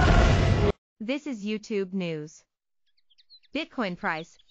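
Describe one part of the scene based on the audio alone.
A young woman speaks calmly and clearly through a microphone.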